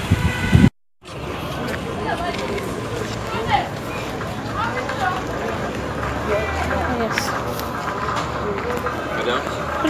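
Outdoors, a busy market murmurs with distant voices and bustle.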